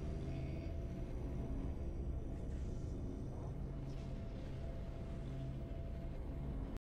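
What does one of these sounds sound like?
Triumphant victory music plays with low, steady chords.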